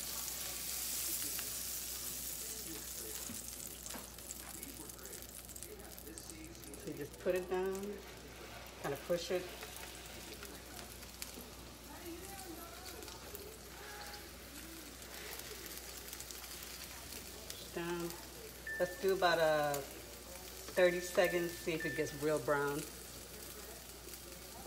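Food sizzles softly on a hot griddle and slowly quiets.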